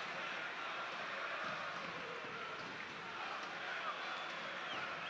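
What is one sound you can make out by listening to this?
A stadium crowd murmurs and chants steadily in the distance.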